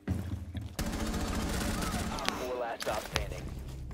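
Rifle shots ring out in a short burst.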